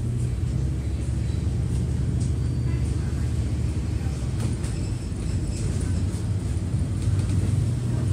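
Traffic hums on the road nearby.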